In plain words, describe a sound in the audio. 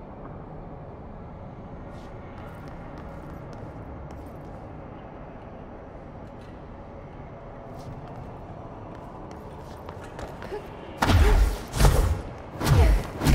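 Footsteps patter on a hard floor.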